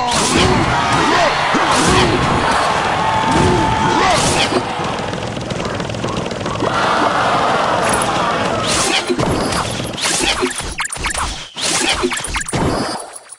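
Cartoonish battle sound effects clash, zap and thud.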